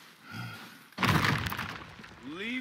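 A body rolls heavily across snowy ground with a thump.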